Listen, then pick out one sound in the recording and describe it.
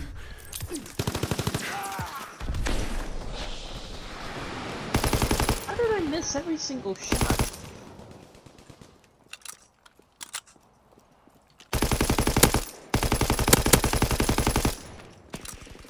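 A machine gun fires in rapid bursts, loud and close.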